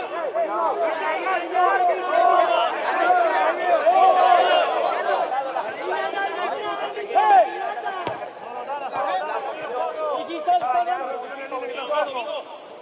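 Many men shout and call out together outdoors.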